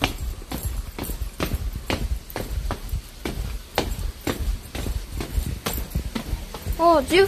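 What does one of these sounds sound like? Footsteps tap steadily down stone steps.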